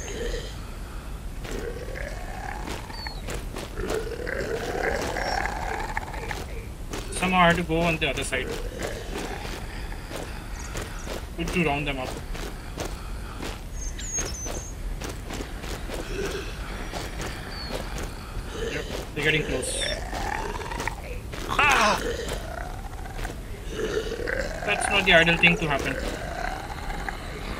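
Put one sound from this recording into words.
Zombies groan and moan in a video game.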